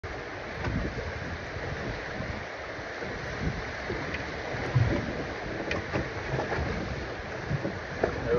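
Waves slosh and splash against pier pilings close by.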